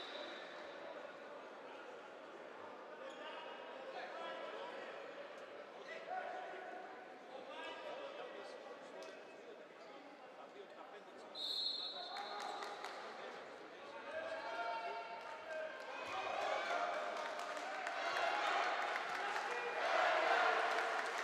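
A handball bounces on a hard floor.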